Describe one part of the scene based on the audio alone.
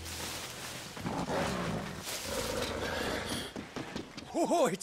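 A large wolf growls and snarls.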